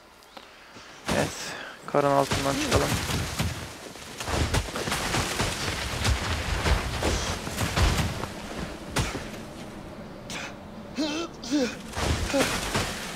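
Snow rumbles and roars in an avalanche.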